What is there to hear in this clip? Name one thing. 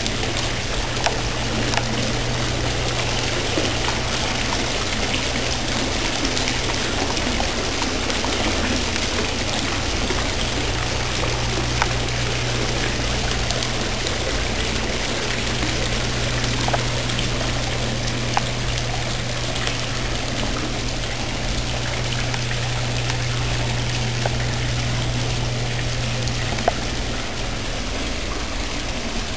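Water from a fountain splashes and trickles steadily into a pool.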